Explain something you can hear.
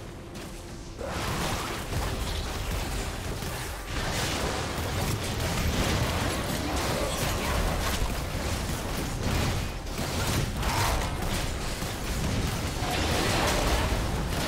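Game spell blasts and blows crackle and thud in a busy fight.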